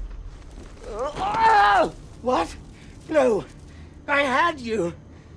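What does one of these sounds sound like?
A middle-aged man speaks in an agitated, rising voice.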